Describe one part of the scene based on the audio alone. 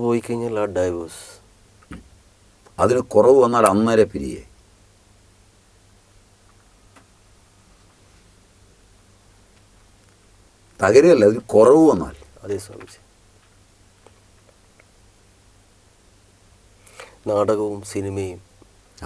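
A man speaks slowly and emphatically, close to a microphone, with long pauses.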